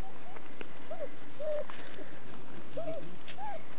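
Small paws scuffle on gravel.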